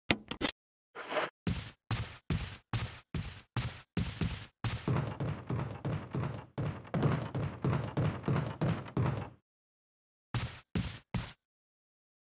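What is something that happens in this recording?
Footsteps thud steadily on wooden stairs and floorboards.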